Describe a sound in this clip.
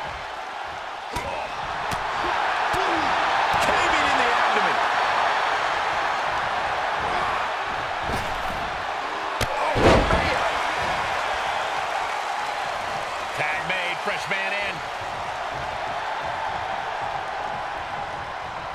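A large crowd roars and cheers throughout.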